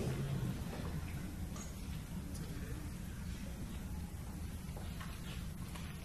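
A man speaks into a microphone in a room with some echo.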